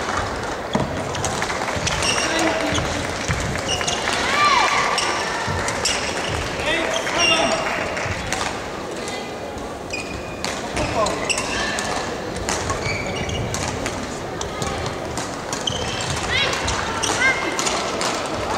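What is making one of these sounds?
Shuttlecocks are struck with sharp pops of rackets.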